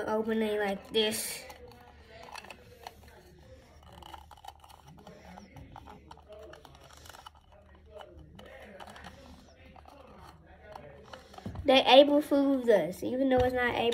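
A squishy ball crinkles and squelches in a boy's hands.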